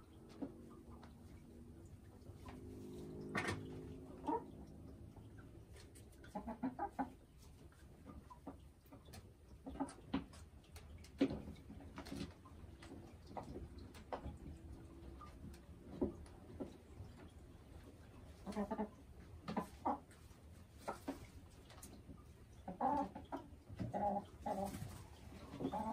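A hen clucks softly and croons close by.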